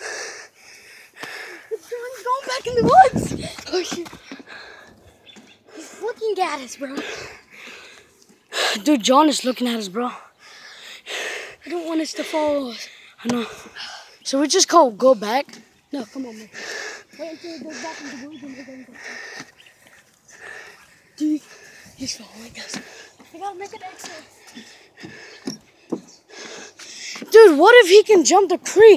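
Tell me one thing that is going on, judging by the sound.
A boy talks with animation close to a phone microphone.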